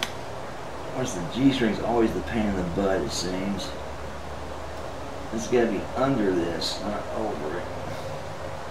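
An electric guitar plays quick runs of notes through an amplifier.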